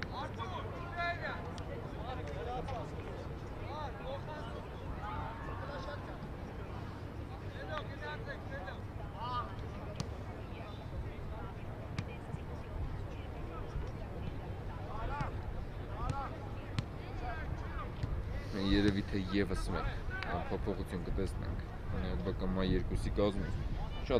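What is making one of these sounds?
Men shout to each other outdoors across an open sports field.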